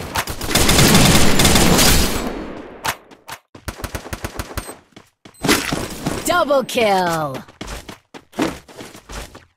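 Gunshots fire in quick bursts.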